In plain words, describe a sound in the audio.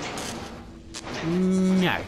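Electric sparks crackle and sputter.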